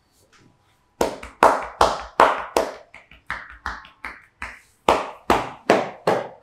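Hands slap and pat on a back in a quick, rhythmic beat.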